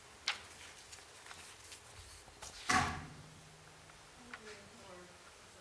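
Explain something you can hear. An audience shifts in their seats with scattered knocks and rustles.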